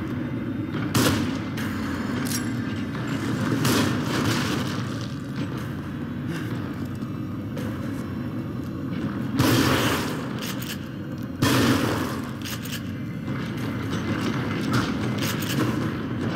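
A rifle fires loud, sharp shots that echo.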